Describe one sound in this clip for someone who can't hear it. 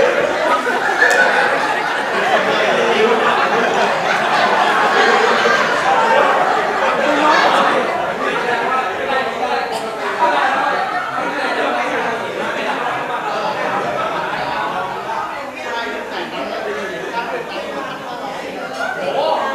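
Young men talk with animation through a microphone in an echoing hall.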